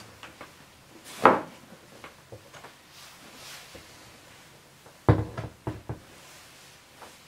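Clothing rustles as a person moves about.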